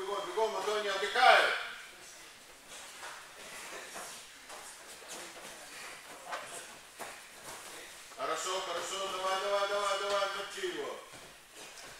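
A man shouts loudly in an echoing hall.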